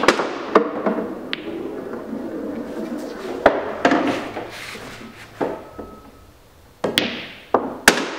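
Pool balls clack together sharply on a table.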